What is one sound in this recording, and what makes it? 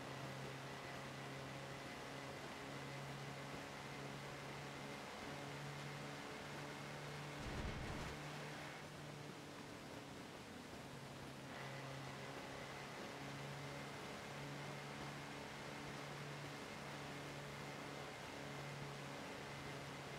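Tyres hiss on a snowy road.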